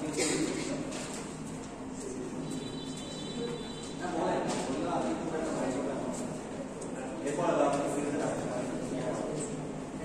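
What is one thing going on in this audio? A young man speaks to an audience.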